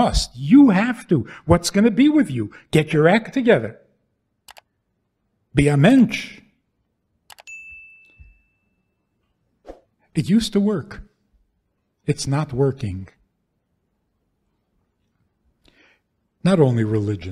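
An elderly man speaks with animation through a microphone, in bursts with pauses.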